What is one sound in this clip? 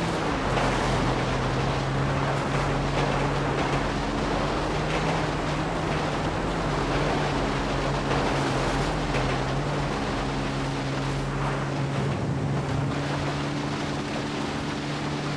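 A quad bike engine drones steadily close by.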